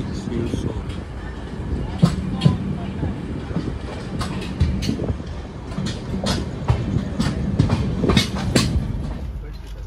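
Train wheels clatter sharply over rail joints.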